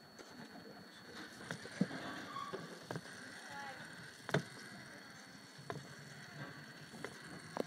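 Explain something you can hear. A small toy robot clicks and ticks as its plastic legs step.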